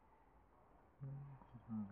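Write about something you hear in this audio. A young woman speaks briefly, close by.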